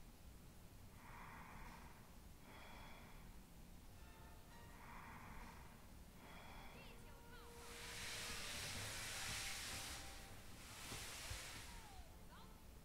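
A sleeping person breathes slowly and deeply.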